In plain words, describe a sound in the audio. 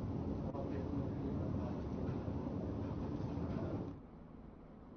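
A crowd of men chatters and murmurs nearby.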